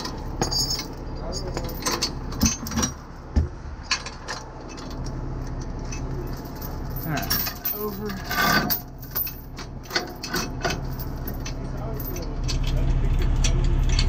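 Metal chains clink and rattle as they are handled.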